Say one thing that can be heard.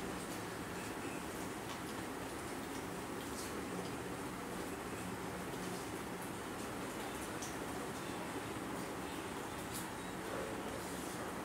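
Spoons and hands clink softly against plates.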